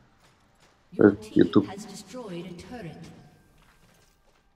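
A young man speaks loudly and briefly into a close microphone.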